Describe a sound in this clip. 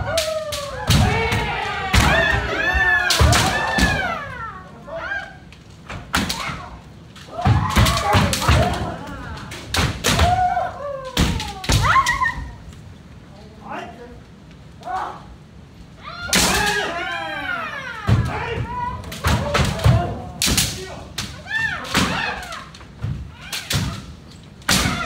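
Bare feet stamp on a wooden floor.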